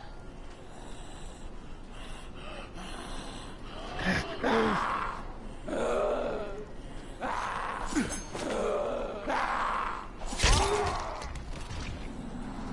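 A weapon strikes a zombie with heavy thuds.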